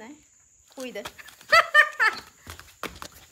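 A woman laughs brightly close by.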